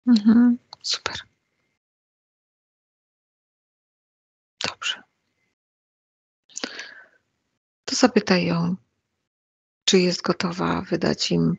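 A middle-aged woman speaks calmly and haltingly into a headset microphone, heard as over an online call.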